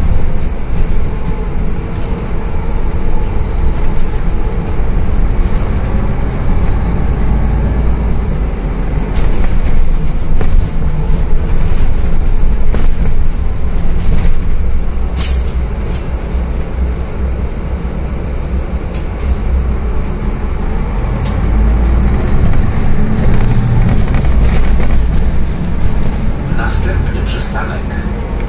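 A bus engine hums and rumbles steadily from inside as the bus drives along.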